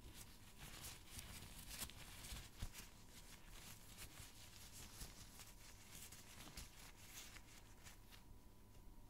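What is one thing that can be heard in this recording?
Tissue paper crinkles and rustles close to a microphone.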